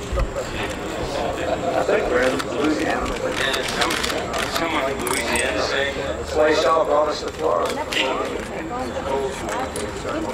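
A man laughs and talks cheerfully nearby.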